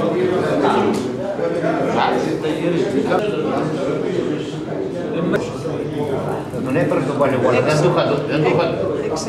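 Playing cards slap and click onto a table.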